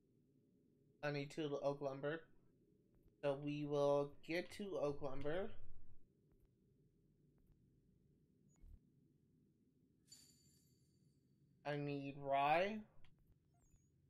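A young man talks casually into a microphone, in short bursts.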